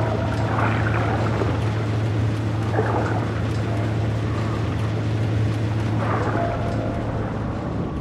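Heavy footsteps clank on a metal floor.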